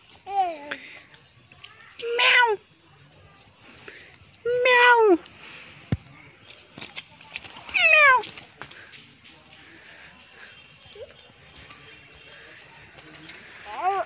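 A young child calls out in short, high, sing-song cries close by.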